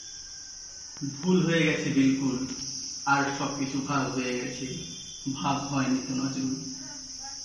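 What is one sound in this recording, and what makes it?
A young man speaks calmly and clearly into a nearby microphone.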